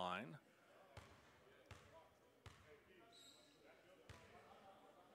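A basketball bounces on a hard wooden floor in a large echoing hall.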